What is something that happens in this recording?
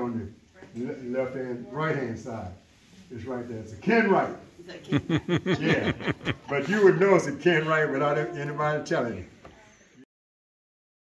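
An elderly man speaks with animation nearby.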